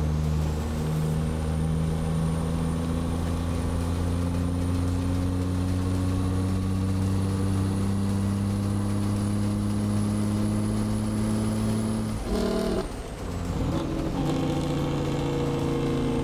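A truck's diesel engine drones steadily, slowly rising in pitch, then drops as the gears shift.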